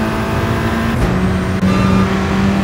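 A race car engine drops in pitch as it shifts gears twice.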